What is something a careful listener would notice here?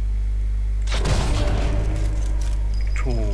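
A rifle fires a single loud shot.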